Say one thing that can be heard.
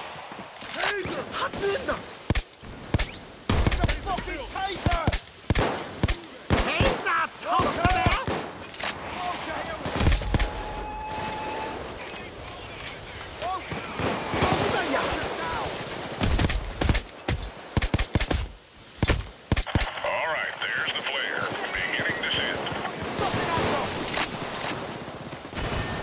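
Gunfire cracks in sharp, loud bursts.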